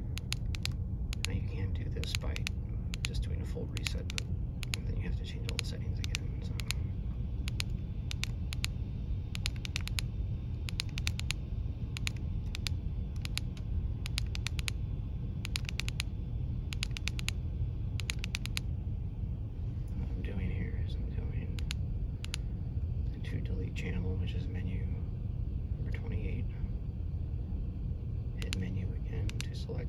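A handheld radio gives quick short beeps as its buttons are pressed.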